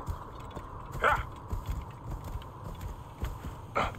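Horse hooves thud steadily on sand.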